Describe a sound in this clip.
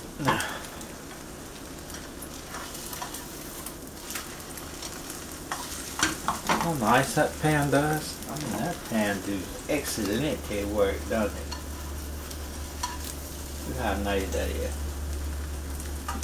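A spatula scrapes against a frying pan.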